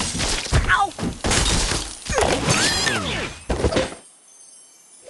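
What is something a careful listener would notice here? Blocks crash and break apart.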